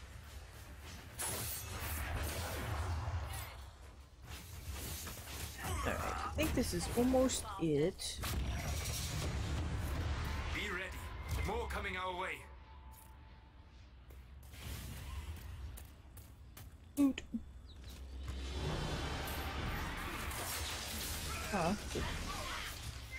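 Magic spells crackle and burst in a game battle.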